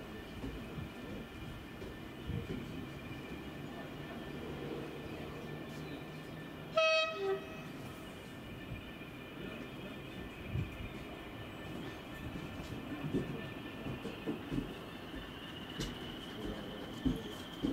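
A diesel locomotive engine rumbles as it slowly approaches.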